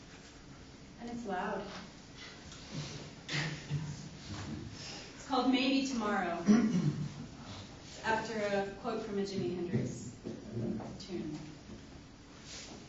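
A woman speaks calmly to an audience.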